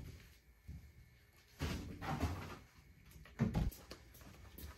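A freezer lid thumps open and shut.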